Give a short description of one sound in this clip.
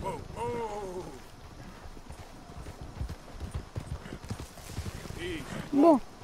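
A horse's hooves thud on grass.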